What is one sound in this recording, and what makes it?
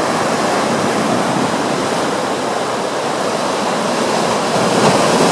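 Waves wash and break against rocks with a steady rushing roar.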